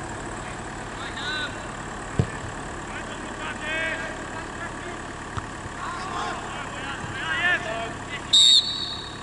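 Distant players shout across an open field outdoors.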